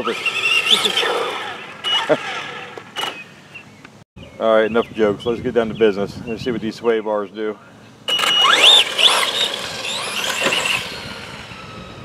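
A small electric motor whines, rising and falling in pitch as a toy car speeds up and races away.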